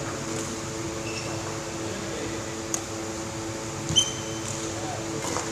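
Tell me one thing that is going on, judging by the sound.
Sports shoes squeak on a wooden court.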